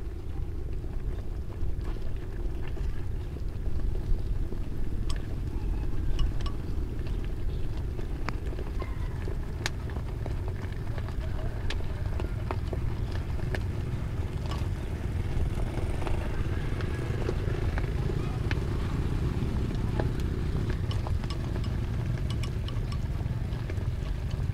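Chopsticks tap against a pot.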